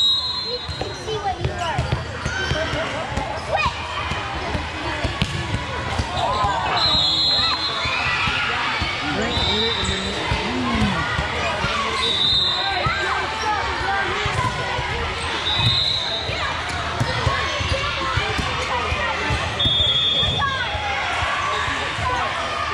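Girls and spectators chatter and call out in a large echoing hall.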